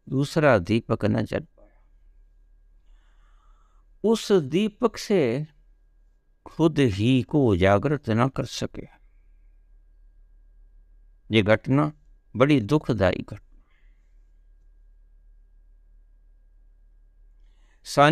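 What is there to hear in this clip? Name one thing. An elderly man speaks calmly in bursts close to the microphone, with pauses between phrases.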